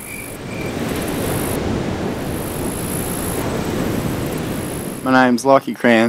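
Surf crashes against rocks with heavy spray.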